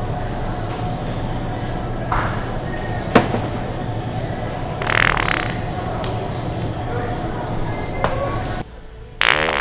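A steady hum fills a large indoor space.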